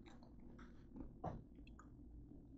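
A bottle knocks against a tabletop.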